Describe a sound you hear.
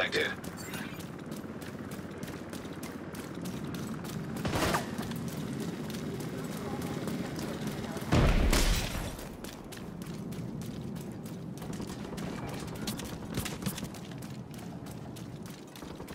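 Footsteps run on wet pavement.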